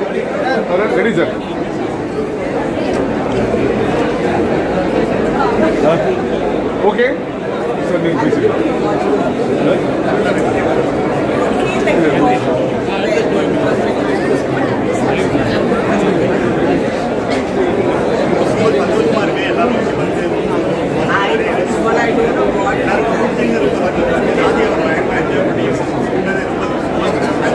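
A crowd of people chatter loudly all around.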